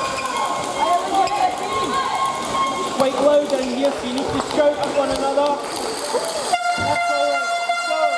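Young women talk and call out in a large echoing hall.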